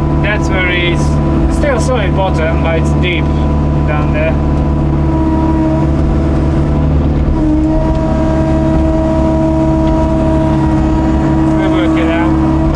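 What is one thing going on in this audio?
An excavator engine rumbles steadily close by.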